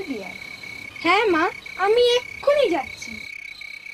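A young boy cries out loudly and in a high voice.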